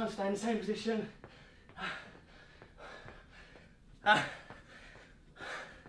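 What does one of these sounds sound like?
Feet thud lightly on a mat as a man jogs in place.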